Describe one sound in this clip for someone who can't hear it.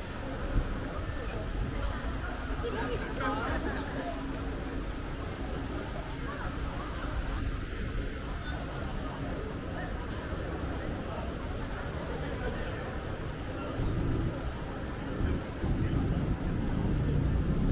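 Rain patters steadily on a wet street outdoors.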